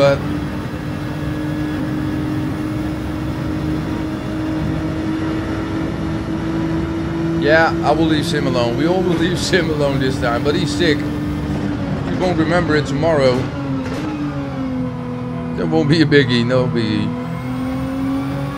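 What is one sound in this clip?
A car engine drones steadily at high speed, then drops in pitch as the car slows.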